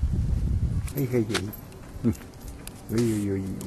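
A dog whines softly close by.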